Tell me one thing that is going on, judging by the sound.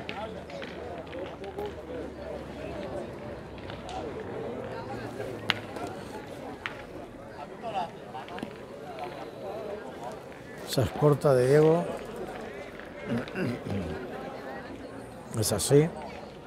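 People talk in a crowd outdoors.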